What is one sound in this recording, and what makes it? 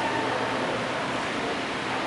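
Footsteps pass close by on a hard floor.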